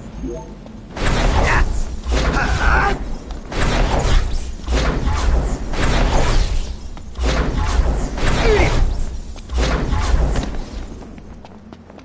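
Heavy blows and whooshes of a fight crash in loud bursts.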